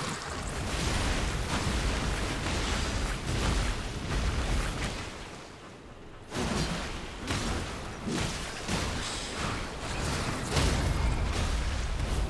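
Water splashes loudly as a huge creature strikes.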